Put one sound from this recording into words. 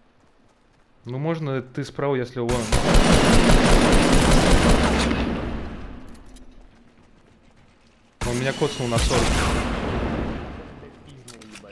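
A game gun fires in rapid bursts.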